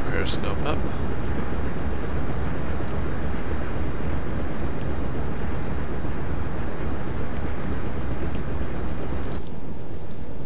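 A submarine's propellers churn underwater with a deep steady rumble.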